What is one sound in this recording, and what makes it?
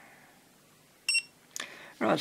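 An electronic tester gives a short, high beep.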